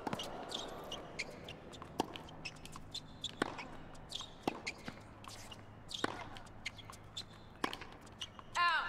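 A tennis ball is struck sharply back and forth with rackets.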